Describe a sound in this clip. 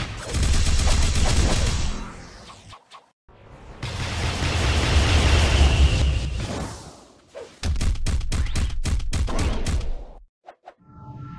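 Loud magical blasts roar and crackle in bursts.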